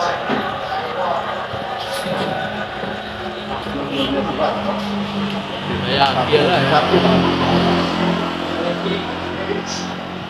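A man commentates on a football match from a television.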